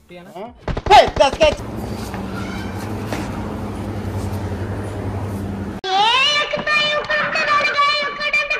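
Footsteps shuffle softly on a hard floor.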